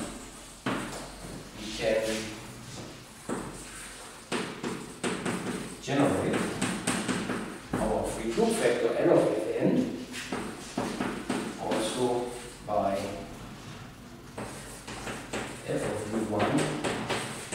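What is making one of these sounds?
An elderly man lectures calmly in a reverberant room.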